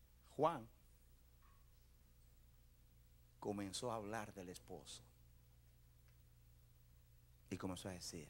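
A man preaches with animation into a microphone, heard through loudspeakers in a large room, with pauses between phrases.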